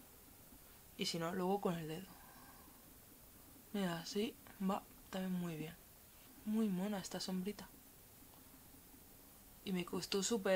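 A young woman talks calmly and close by, in bursts with pauses.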